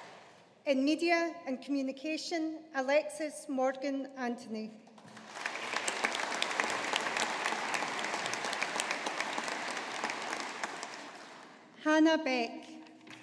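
A woman speaks clearly into a microphone, heard over loudspeakers in a large echoing hall.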